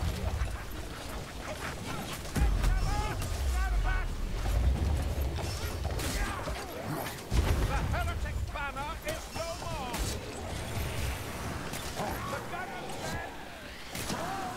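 Weapons clash and thud in a close fight.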